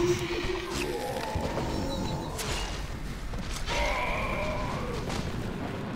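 Spell effects crackle and burst during a fight.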